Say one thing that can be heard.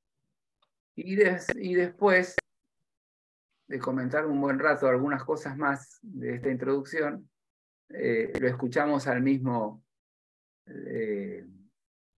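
An elderly man reads aloud calmly over an online call.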